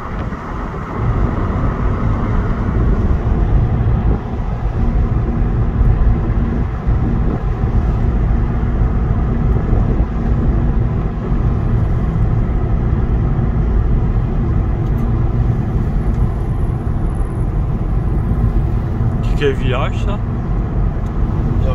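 Tyres roll over a country road.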